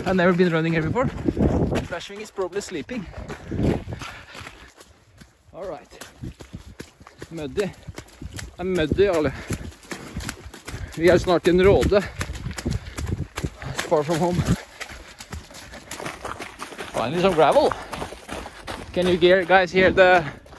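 Running footsteps thud and crunch on a gravel trail.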